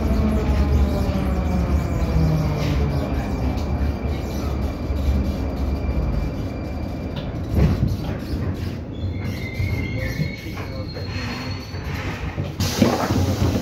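A train rumbles and rattles steadily while moving.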